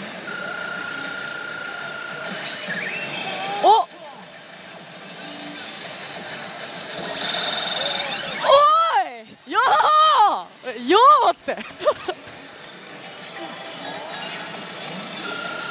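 A slot machine chimes and plays electronic jingles.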